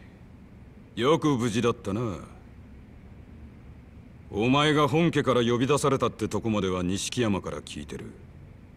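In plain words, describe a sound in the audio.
A man speaks in a low, stern voice.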